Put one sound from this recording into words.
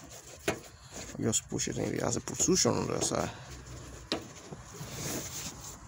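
A gloved hand rubs and taps against a plastic hose.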